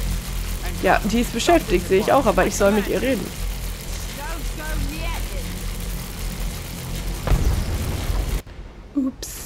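Magical lightning crackles and hisses steadily.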